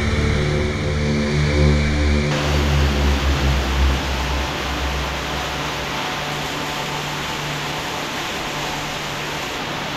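Water rushes and splashes over rock, echoing in a narrow rocky space.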